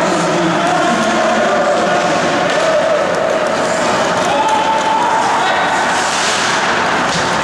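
Ice skates scrape and swish across the ice.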